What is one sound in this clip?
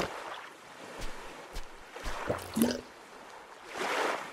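A small stone knocks against a coconut shell.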